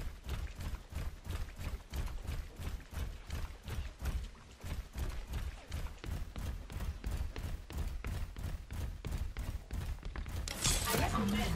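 Heavy footsteps thud quickly and steadily.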